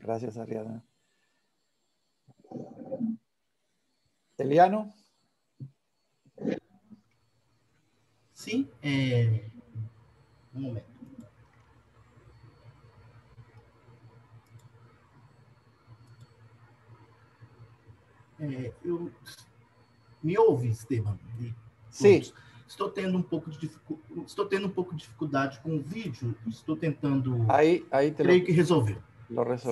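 An elderly man talks calmly over an online call.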